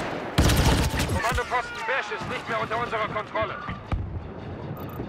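Laser blasters fire in rapid bursts.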